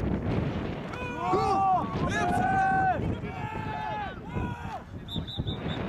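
Young men shout loudly across an outdoor field.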